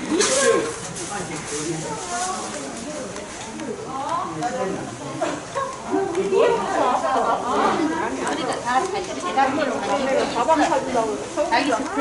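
Women chatter and talk at once close by and in the background.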